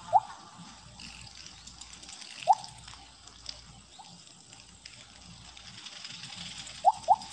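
Short rising electronic blips chime now and then.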